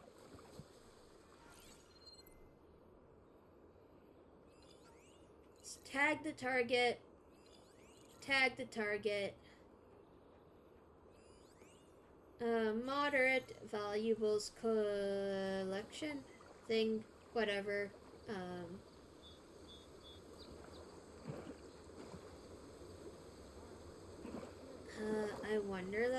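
Water splashes as someone wades through a shallow stream.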